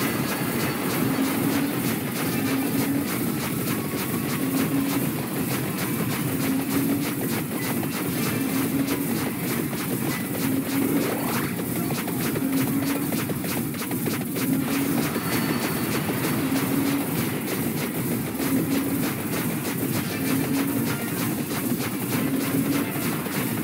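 A dense barrage of retro-style video game attack sound effects crackles and pops.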